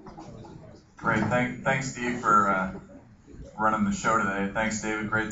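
A man speaks calmly at the front of a room, heard from a distance.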